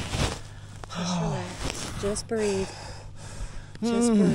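A young woman talks nearby, close to the microphone.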